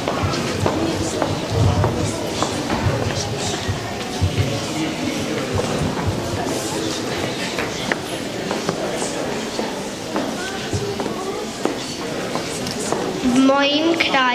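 Children and adults chatter in a room.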